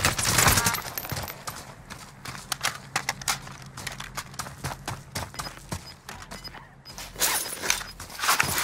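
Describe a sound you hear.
Running footsteps crunch quickly on gravel.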